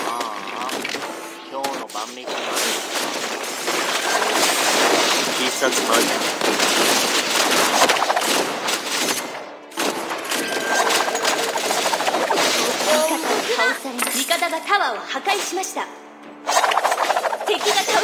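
Game spell effects crackle and blast in rapid bursts.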